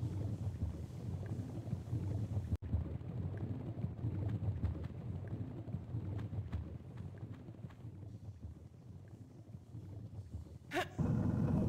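Lava bubbles and rumbles low and steadily.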